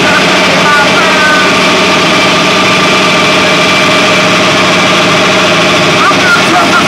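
A harmonica wails loudly through an amplified microphone.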